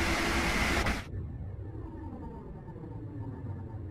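A train rumbles low and muffled, heard from inside a carriage.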